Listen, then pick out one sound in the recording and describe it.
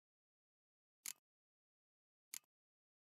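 Short soft clicks sound now and then.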